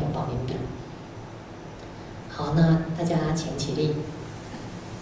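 A woman speaks calmly into a microphone, heard through a loudspeaker.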